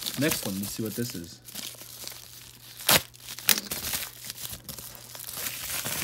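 A padded bubble mailer crinkles as it is handled.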